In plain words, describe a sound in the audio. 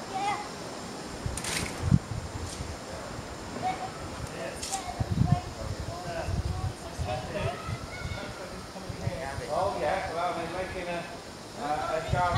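Wind gusts outdoors.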